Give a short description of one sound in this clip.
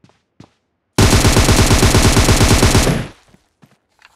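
An automatic rifle fires a loud rapid burst.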